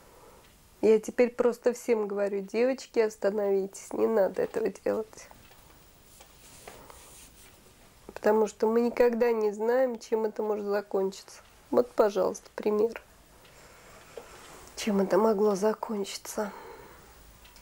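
A woman speaks calmly into a close microphone, pausing between phrases.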